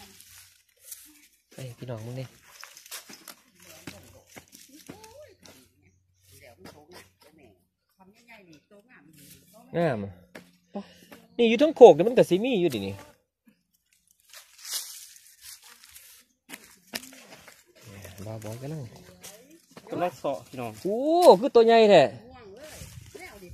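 A hoe chops into dry soil with dull thuds.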